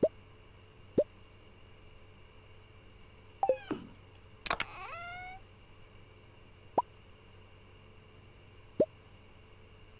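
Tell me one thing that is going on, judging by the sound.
Short soft game menu blips pop now and then.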